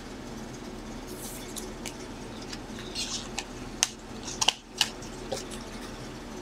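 Cards rustle and flick softly as hands sort through them.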